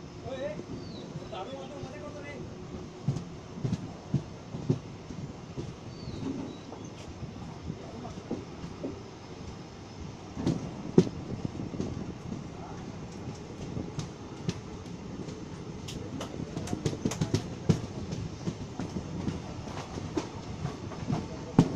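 Train wheels clack over rail joints in uneven knocks.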